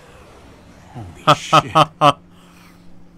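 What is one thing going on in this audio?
A young man laughs loudly in bursts close to a microphone.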